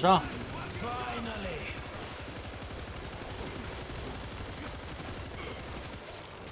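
Rapid gunfire rattles and echoes in a tunnel.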